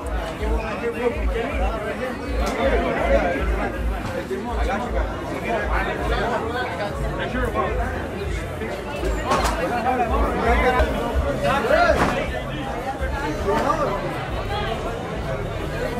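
A large crowd of young people talks and shouts excitedly close by.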